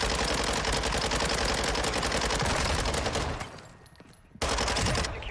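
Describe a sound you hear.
Rapid gunfire rattles in fast bursts.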